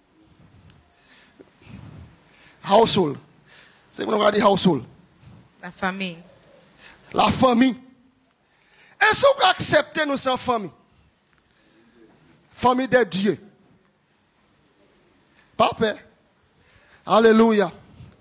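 A man preaches forcefully into a microphone in bursts, heard through loudspeakers in an echoing room.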